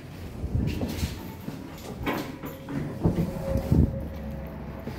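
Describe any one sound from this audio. A heavy door clunks open and swings shut.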